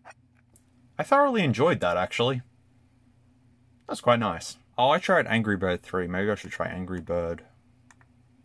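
A handheld game console plays loud electronic beeping tunes.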